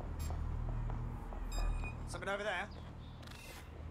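Footsteps run across pavement.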